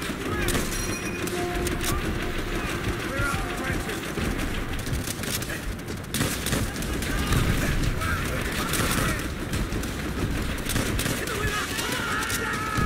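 Gunfire crackles and booms constantly in a loud battle.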